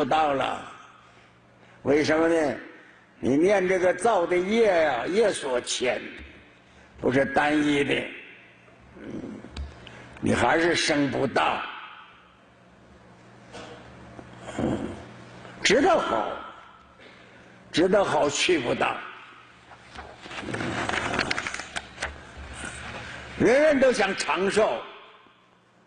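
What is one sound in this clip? An elderly man speaks calmly and slowly into a microphone, with pauses between phrases.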